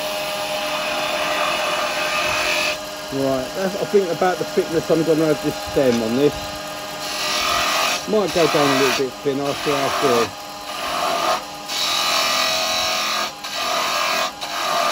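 A chisel scrapes against spinning wood with a loud hissing rasp.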